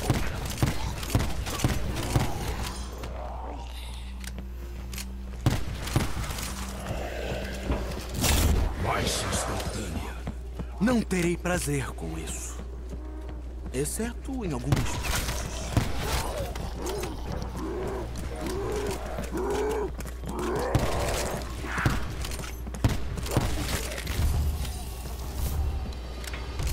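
Gunshots fire in rapid bursts from an automatic rifle.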